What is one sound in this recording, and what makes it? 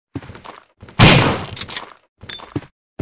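A head bursts with a loud wet splatter.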